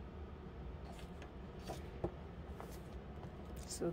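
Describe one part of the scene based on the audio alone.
Paper pages of a book rustle and flap as the book is closed.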